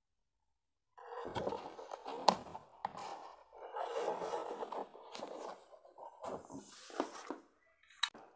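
A cardboard box rustles and scrapes as it is handled.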